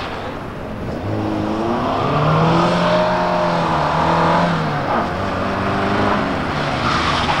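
A car engine revs hard, rising and falling in pitch, as the car accelerates through a course.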